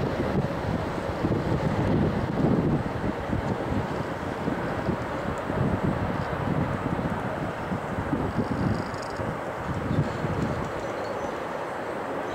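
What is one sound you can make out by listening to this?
Wind blusters loudly outdoors.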